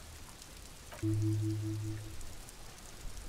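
A short, low, pulsing electronic chime sounds.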